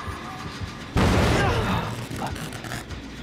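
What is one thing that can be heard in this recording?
A machine bangs and crackles with sparks.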